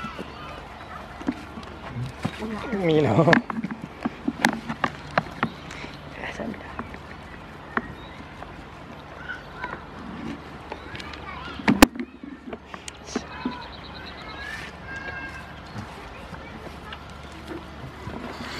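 Goats munch and crunch on leafy food close by.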